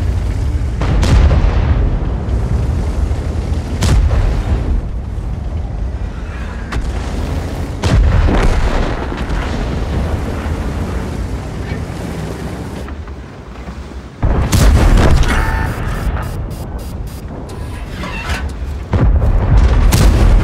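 Shells explode with loud blasts.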